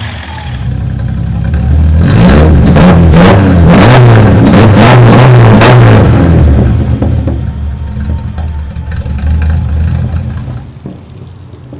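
A car engine revs loudly and crackles close by.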